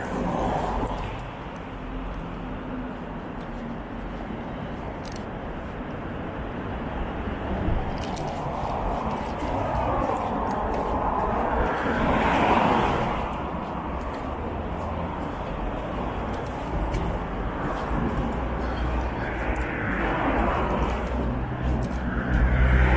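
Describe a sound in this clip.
Cars drive past on a wet, slushy road.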